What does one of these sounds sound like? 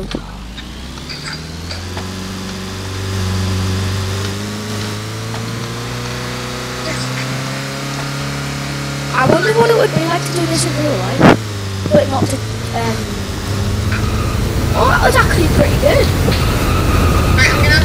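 A car engine drones and rises in pitch as it speeds up.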